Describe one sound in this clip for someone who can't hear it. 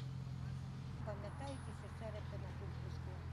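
A middle-aged woman talks nearby outdoors.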